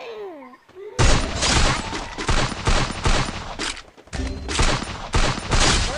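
Rapid gunshots crack in loud bursts.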